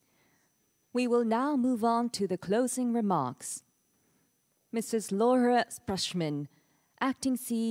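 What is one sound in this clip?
A woman speaks calmly through loudspeakers in a large echoing hall.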